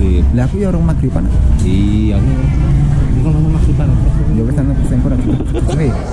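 A young man talks close by with a cheerful tone.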